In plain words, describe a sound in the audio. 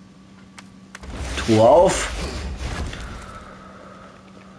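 A heavy chest lid bursts open with a deep rumble and a whoosh.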